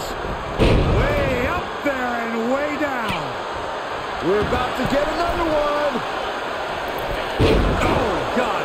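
Bodies slam onto a wrestling mat with heavy thuds.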